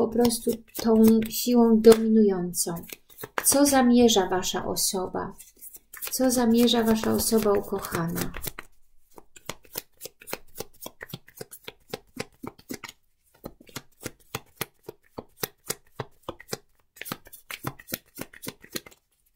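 Playing cards riffle and slap softly as they are shuffled by hand.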